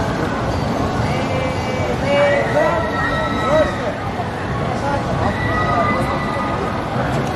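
Riders on a swinging amusement ride scream and shout.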